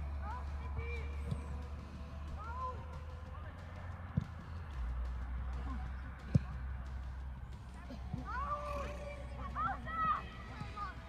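Young players shout across an open field.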